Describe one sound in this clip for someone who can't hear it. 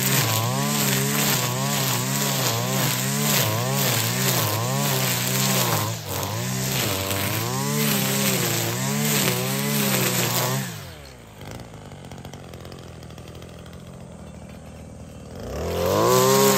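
A string trimmer engine whines loudly, its pitch rising and falling over and over as it cuts grass, then drops to a low idle and revs up again.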